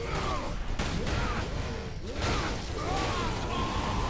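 A heavy blade swings and slashes with a whoosh.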